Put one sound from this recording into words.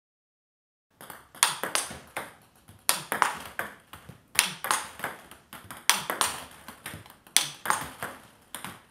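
A table tennis ball bounces and is struck by paddles in quick, repeated knocks.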